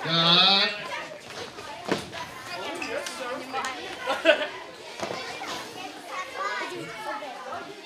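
Children's footsteps thud nearby.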